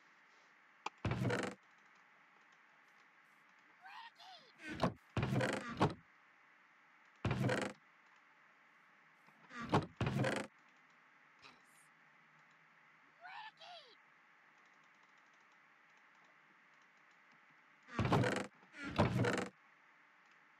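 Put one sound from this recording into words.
A wooden chest creaks open and thumps shut several times.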